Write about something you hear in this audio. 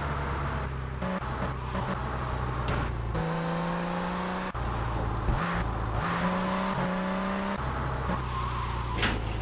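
A sports car engine roars steadily and revs up and down.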